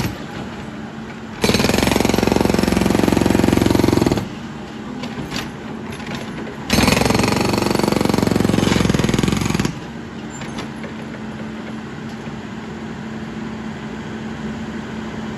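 A backhoe's diesel engine rumbles steadily.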